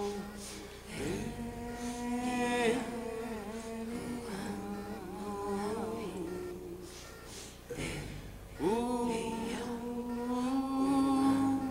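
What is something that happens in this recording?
A small group of musicians plays guitars.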